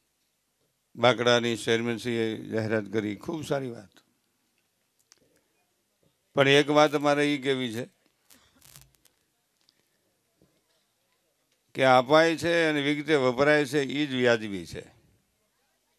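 An elderly man sings into a microphone in long, drawn-out phrases with pauses between them.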